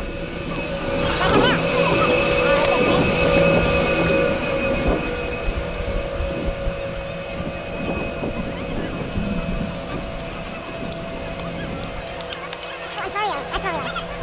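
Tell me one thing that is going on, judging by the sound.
Lift machinery hums steadily.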